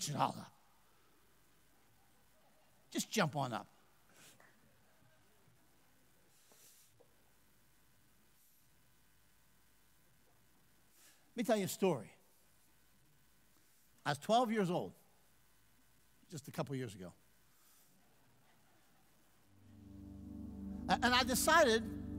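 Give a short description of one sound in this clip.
A man speaks calmly through a microphone in a large hall, with pauses between phrases.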